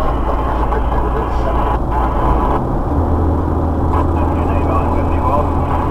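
A passing truck rushes by with a brief whoosh.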